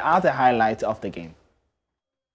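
A young man speaks calmly and clearly into a microphone.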